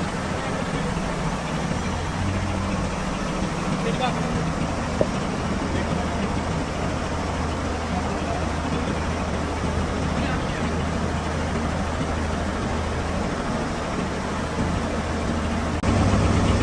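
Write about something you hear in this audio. Heavy chains clink as a hanging engine block swings.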